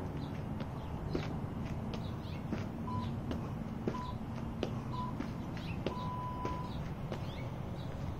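Shoes land on the ground as a man jumps.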